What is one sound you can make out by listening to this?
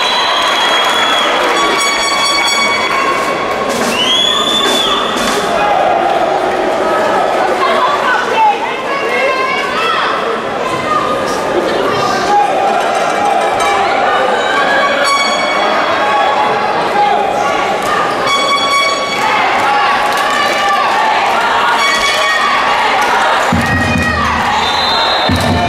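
A crowd cheers and chatters throughout a large echoing hall.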